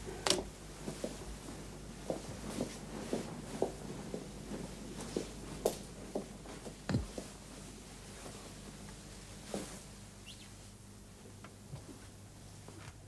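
A woman sobs and sniffles quietly close by.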